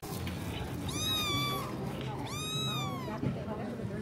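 A kitten meows loudly up close, twice.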